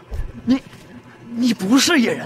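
A man shouts with alarm.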